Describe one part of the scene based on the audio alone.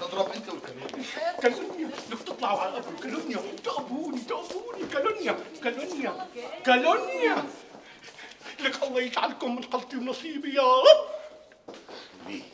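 A middle-aged man shouts with animation close by.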